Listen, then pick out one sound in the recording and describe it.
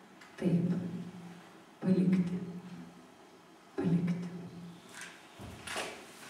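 A woman reads out into a microphone, close by.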